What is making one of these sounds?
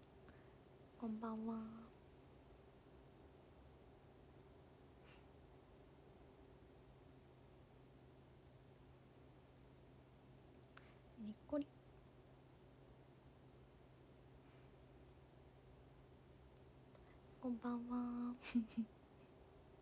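A young woman speaks softly and briefly, close to the microphone, in short bursts.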